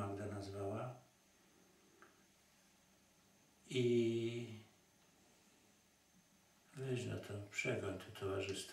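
An elderly man speaks slowly and calmly, close by, with long pauses.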